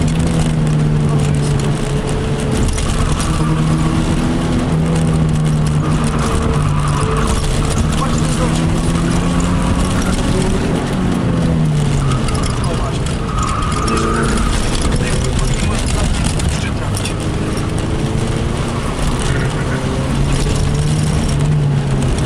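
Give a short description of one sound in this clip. A car engine roars loudly from inside the cabin, its pitch rising and falling as the car speeds up and slows down.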